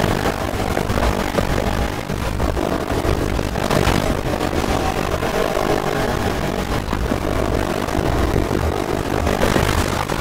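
Tyres screech as a car drifts through a corner.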